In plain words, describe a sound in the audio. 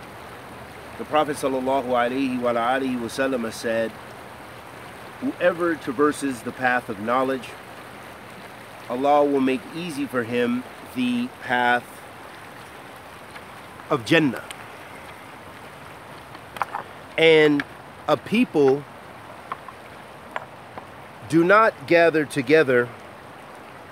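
A man speaks close by in a calm, chatty way.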